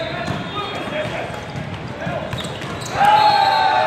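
A volleyball is struck with a hand.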